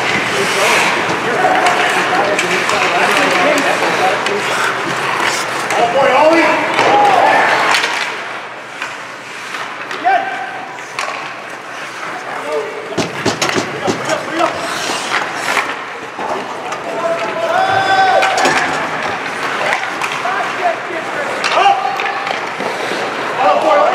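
A crowd murmurs and calls out in an echoing rink.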